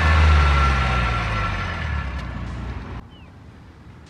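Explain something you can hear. A car engine idles with a low, steady rumble from the exhaust.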